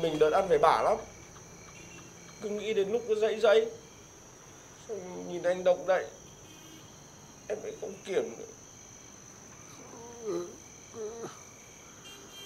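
A young man speaks softly and sorrowfully nearby.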